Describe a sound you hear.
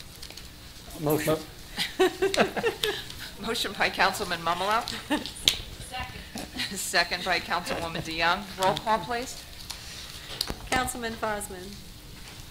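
A middle-aged woman speaks calmly into a microphone in a room with some echo.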